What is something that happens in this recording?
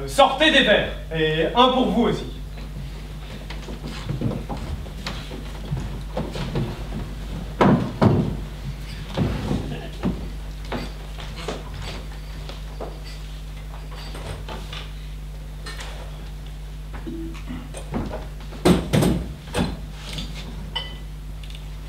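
A man speaks loudly across a large echoing hall.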